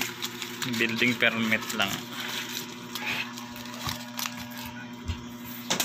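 Paper banknotes rustle and crinkle close by.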